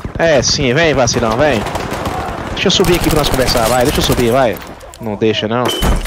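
A gun fires several shots.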